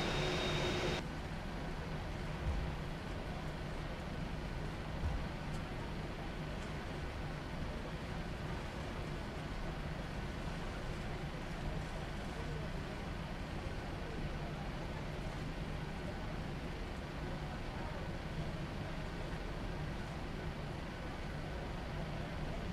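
Jet engines hum steadily from inside a cockpit.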